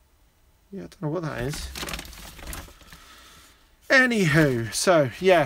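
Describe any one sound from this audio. A cable rustles against a plastic bag.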